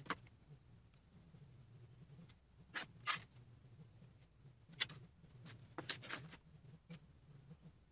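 A plastic set square taps and slides across a board.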